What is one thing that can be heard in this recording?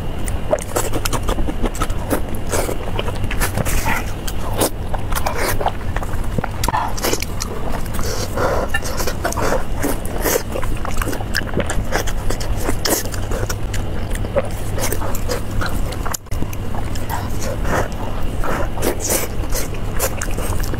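Sticky, saucy meat squelches and tears between hands.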